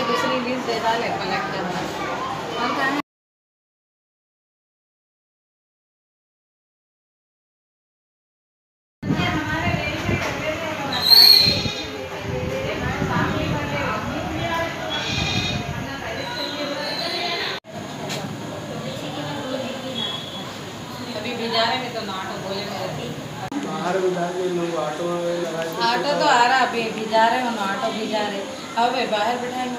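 Young women talk calmly nearby.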